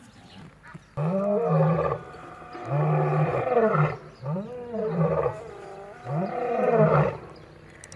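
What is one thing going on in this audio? A lion roars in loud, repeated grunting calls nearby.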